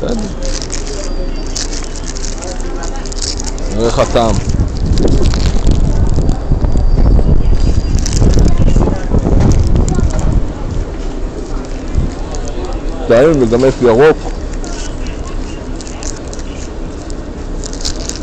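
A paper food wrapper crinkles in hands.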